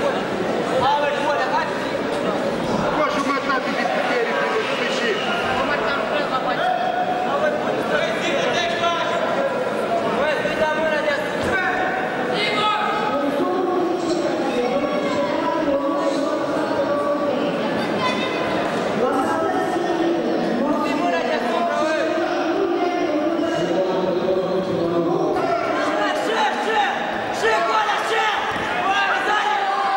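A crowd of men and women shouts and cheers in a large echoing hall.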